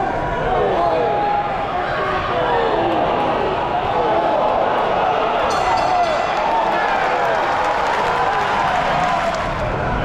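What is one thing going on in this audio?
A large crowd cheers and shouts loudly in an echoing hall.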